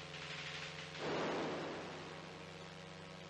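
An electronic explosion bursts with a loud hiss and fades.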